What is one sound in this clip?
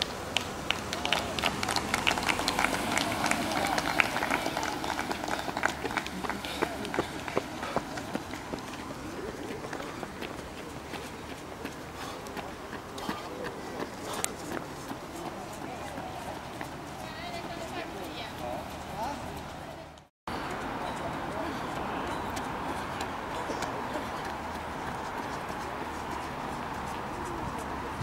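A runner's footsteps slap on asphalt.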